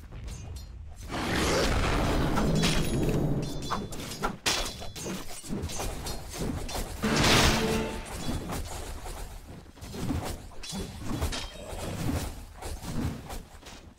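Game spells whoosh and crackle during a battle.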